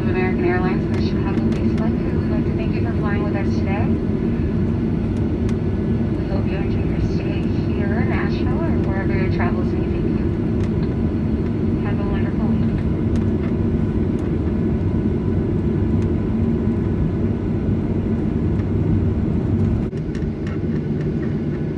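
Airplane wheels rumble over the ground while taxiing.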